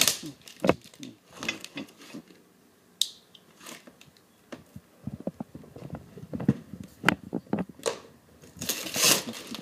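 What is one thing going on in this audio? Hands pull and tear plastic wrap, which crinkles.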